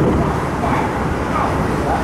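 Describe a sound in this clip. A passing train rushes by close outside.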